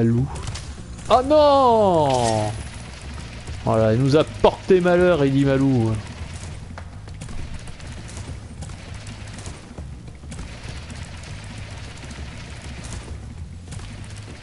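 A low rushing roar of flames goes on as a character charges along at speed.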